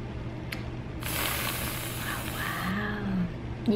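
Whipped cream sprays and hisses from a can.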